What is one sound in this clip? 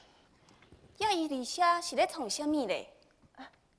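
A young woman sings a short, rising and falling phrase.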